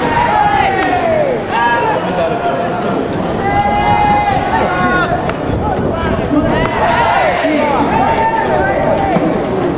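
Young men shout and call out loudly across an open field.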